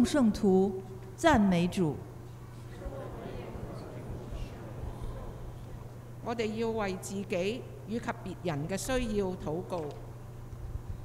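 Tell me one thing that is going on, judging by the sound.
A woman reads out through a microphone.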